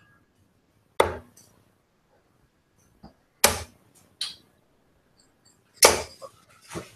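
Darts thud sharply into a dartboard, one after another.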